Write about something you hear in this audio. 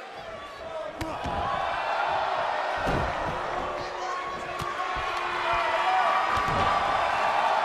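Heavy thuds of bodies hitting a wrestling mat ring out.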